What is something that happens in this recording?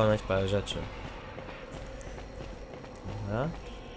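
Footsteps patter softly on a hard floor.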